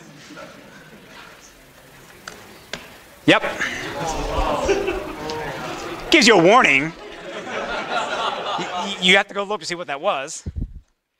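Students murmur and talk among themselves.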